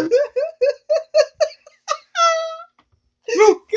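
A young man laughs loudly in rhythmic bursts close by.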